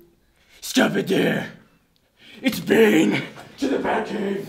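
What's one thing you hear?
A young man shouts excitedly close by.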